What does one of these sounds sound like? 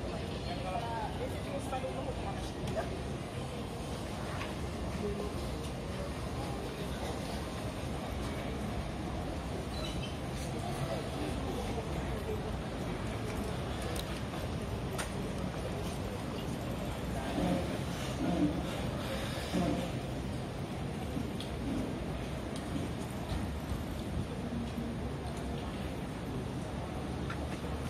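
A crowd of men and women murmurs and chatters nearby outdoors.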